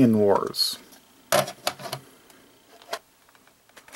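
Plastic game cartridges clack as they are set down on a table.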